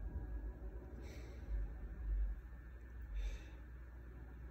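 A young man breathes out slowly and deeply, close by.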